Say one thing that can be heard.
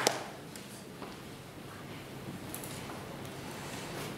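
A woman speaks calmly from a distance in an echoing hall.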